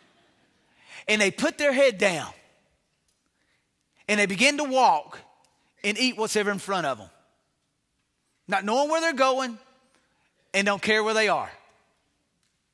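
A middle-aged man speaks emphatically into a microphone in short bursts with pauses.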